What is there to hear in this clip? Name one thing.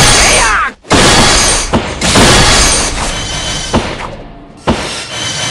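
Punchy video game attack effects crash and whoosh in quick bursts.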